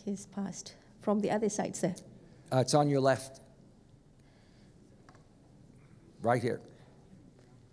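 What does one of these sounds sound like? An elderly man speaks slowly and deliberately into a microphone.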